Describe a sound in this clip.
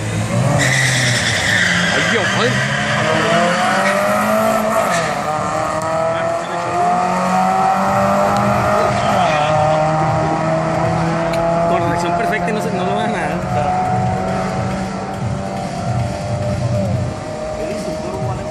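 Two race car engines roar loudly as the cars speed away and slowly fade into the distance.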